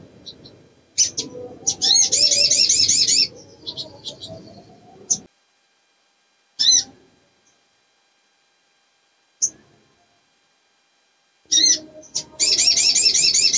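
A small bird flutters its wings inside a cage.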